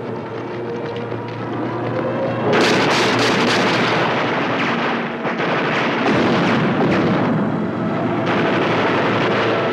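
An airplane engine roars overhead.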